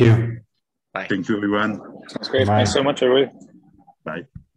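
A second man speaks cheerfully over an online call.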